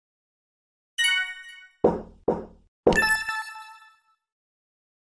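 Coins jingle in a game as a prize tower fills.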